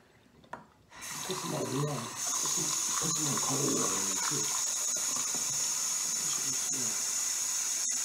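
Water runs from a tap into a bottle.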